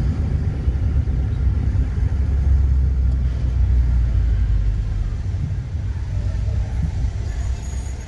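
A car engine rumbles low and steady from inside a slowly moving car.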